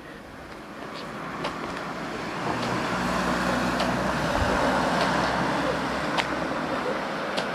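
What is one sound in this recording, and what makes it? Shoes tap and scuff on pavement.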